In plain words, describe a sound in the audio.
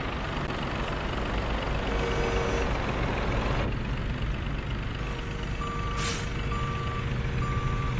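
A truck engine rumbles steadily at idle.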